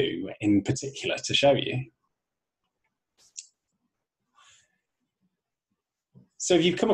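A man speaks calmly and clearly into a microphone, pausing between phrases.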